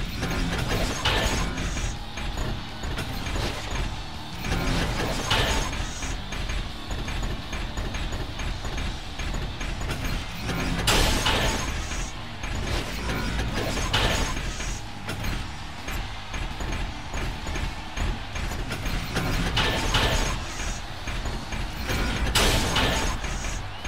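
Metal robots clang loudly as punches land.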